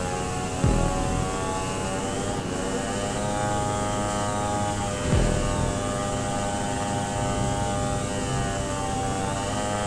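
A motorcycle engine roars steadily at high speed.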